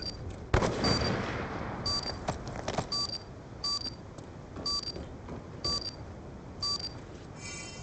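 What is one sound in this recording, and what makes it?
A device beeps at a steady pace.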